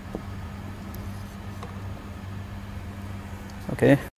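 Fingers click a small plastic part onto an arrow shaft.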